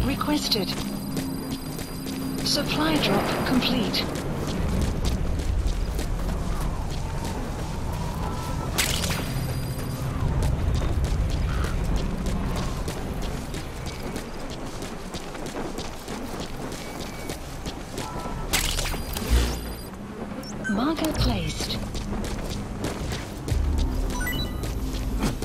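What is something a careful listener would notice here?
Footsteps crunch quickly over dirt and gravel.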